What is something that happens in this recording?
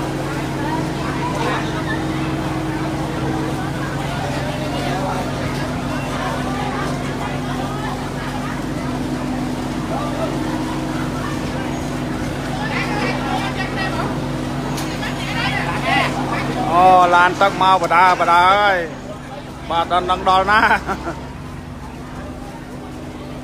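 A crowd of men shout excitedly nearby.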